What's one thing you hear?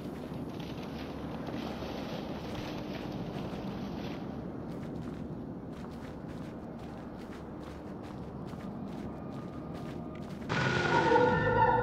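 Light footsteps patter across a hard floor.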